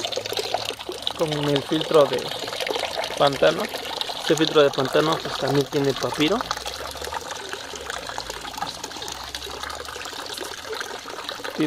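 Water trickles from pipes into a pool.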